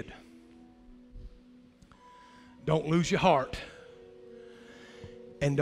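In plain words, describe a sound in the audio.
A middle-aged man speaks with animation into a microphone in a large echoing hall.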